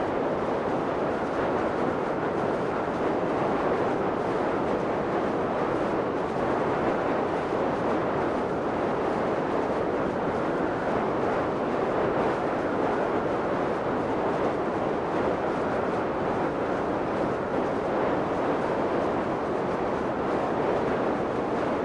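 Wind rushes steadily past a falling skydiver.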